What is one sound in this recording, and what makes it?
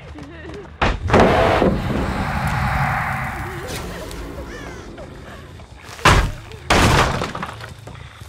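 Wooden planks crash down and splinter with loud cracks.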